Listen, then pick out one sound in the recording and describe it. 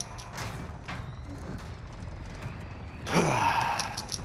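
A heavy metal door clanks and swings open.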